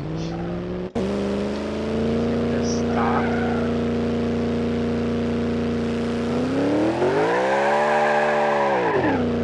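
A car engine drones steadily at high revs, then swells and dips.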